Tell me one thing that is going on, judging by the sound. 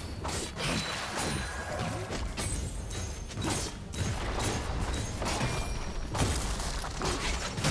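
Magic blasts and hits crackle and burst in a busy video game fight.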